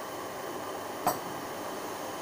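A metal pan knocks against a stove.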